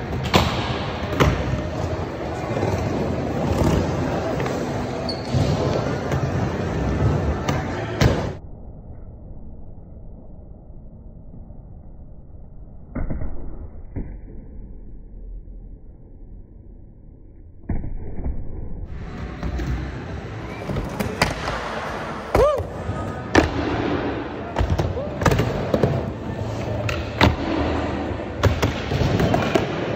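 Skateboard wheels rumble across a smooth concrete bowl.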